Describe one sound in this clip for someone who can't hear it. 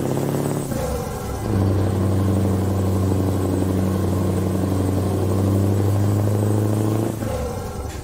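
A truck engine hums steadily and shifts pitch as the truck changes gear.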